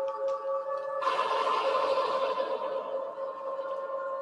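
A burst of hissing electronic noise swells and fades.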